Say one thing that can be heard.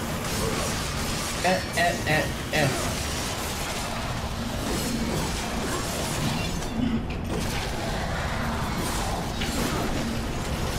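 Blades slash and clash in a fast fight.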